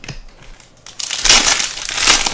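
A plastic card sleeve rustles loudly.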